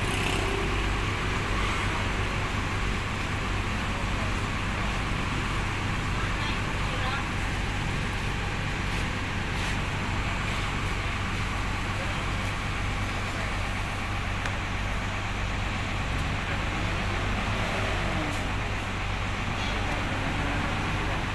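A bus engine revs as the bus slowly moves off.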